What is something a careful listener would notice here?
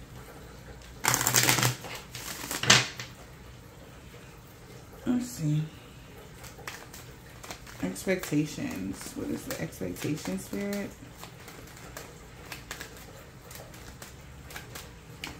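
Playing cards shuffle and riffle softly in hands.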